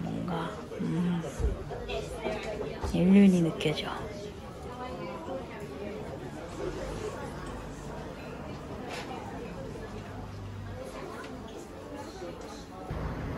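A group of adults talks and murmurs nearby in a busy room.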